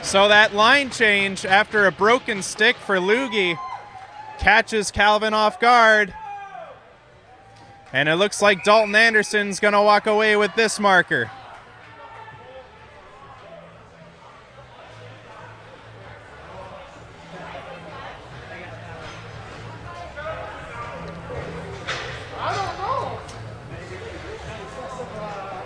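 Spectators chatter and murmur in a large echoing hall.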